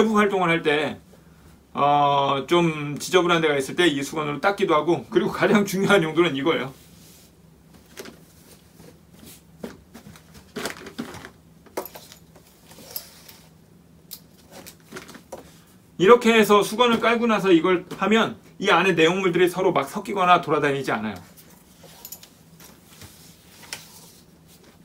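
Clothes rustle as they are folded and pressed into a suitcase.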